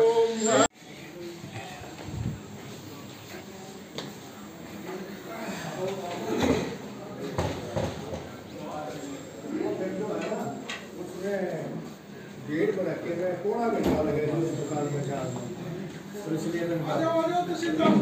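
Several men talk over one another in a crowded room.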